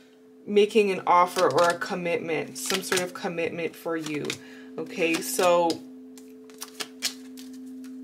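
Playing cards slide and tap onto a table.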